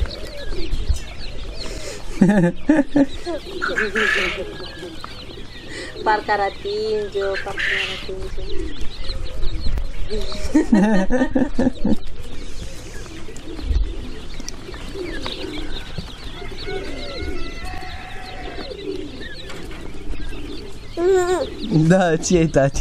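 Small chicks peep and chirp.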